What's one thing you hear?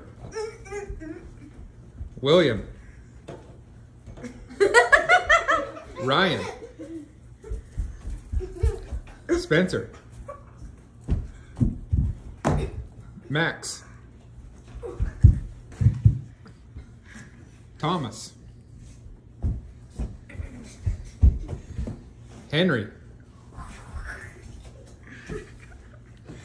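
A child's feet thump on a carpeted floor while dancing.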